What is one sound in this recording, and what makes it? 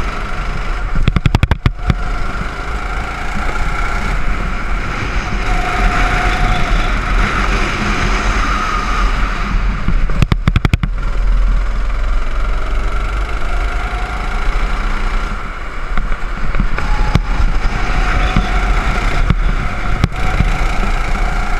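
A go-kart engine buzzes loudly and revs up and down.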